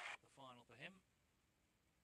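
A young man speaks briefly through a microphone.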